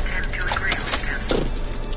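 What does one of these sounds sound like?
A sauce bottle squirts with a wet splat.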